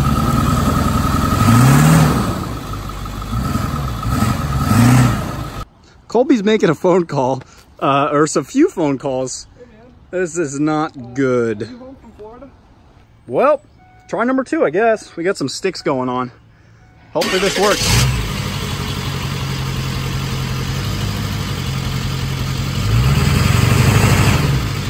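A truck engine rumbles and revs.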